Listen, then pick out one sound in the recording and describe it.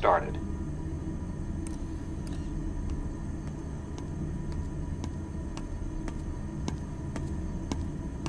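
Footsteps walk across a metal floor.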